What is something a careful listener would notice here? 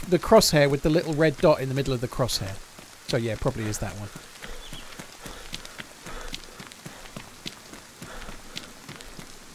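Footsteps crunch on a road.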